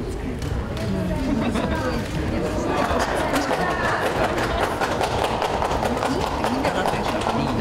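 Footsteps tap on a stage floor.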